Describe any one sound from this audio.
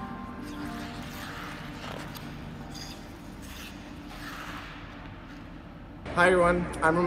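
Ice skate blades scrape and hiss across the ice.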